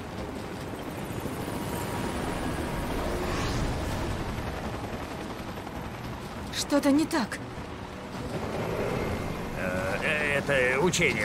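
A helicopter's rotor thumps overhead.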